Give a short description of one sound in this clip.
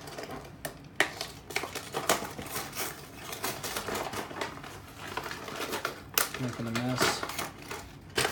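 Plastic packaging crinkles and clicks as it is handled.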